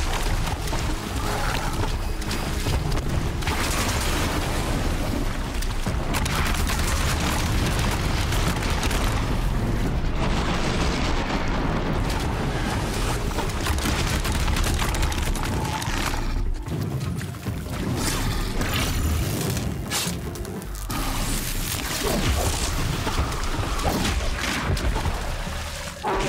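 Gunfire and blasts crackle throughout a fight.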